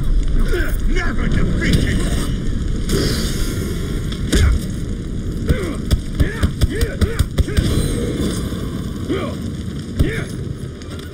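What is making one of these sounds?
Swords clash and slash in quick, repeated blows.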